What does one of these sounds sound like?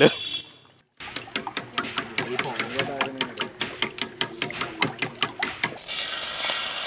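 A spoon beats eggs quickly against a metal bowl.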